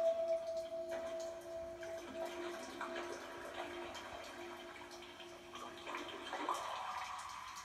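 Fingers tap softly on rubber drum pads.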